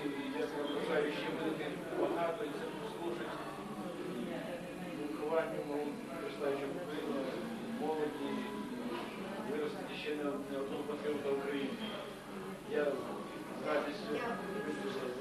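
A man speaks calmly and at length, close by.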